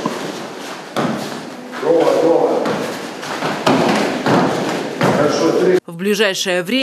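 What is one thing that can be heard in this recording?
Bare feet thud and shuffle on a mat.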